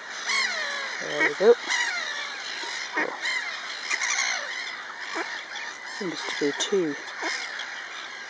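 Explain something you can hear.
Ducks quack nearby.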